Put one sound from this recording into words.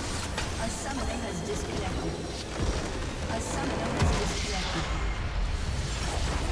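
Game spell effects crackle and whoosh.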